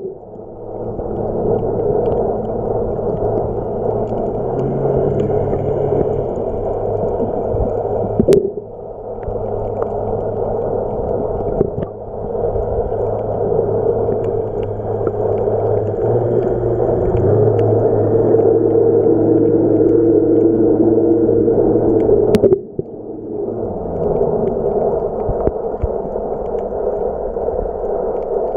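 Water swirls and rumbles, heard muffled from underwater.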